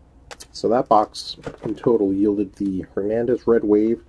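Trading cards rustle and tap as hands handle them.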